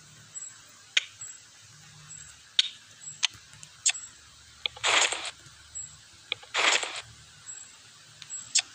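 Video game menu buttons click sharply now and then.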